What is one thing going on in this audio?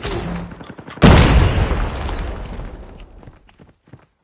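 A rifle fires a loud shot that booms and slowly fades.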